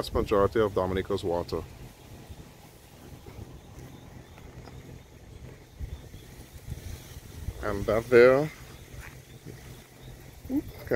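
Wind blows through tall grass outdoors.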